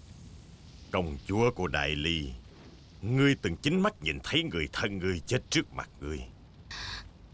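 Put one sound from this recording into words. A man speaks slowly, close by.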